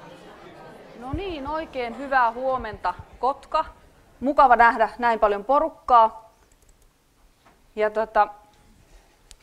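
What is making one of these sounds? A woman speaks into a microphone, calmly addressing an audience.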